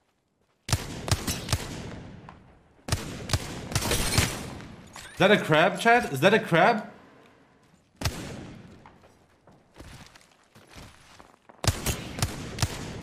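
Gunshots fire in quick bursts, ringing out after each volley.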